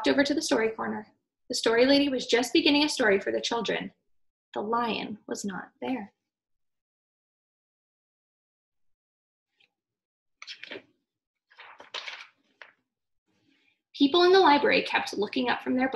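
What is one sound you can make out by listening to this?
A young woman reads a story aloud, close by, with expression.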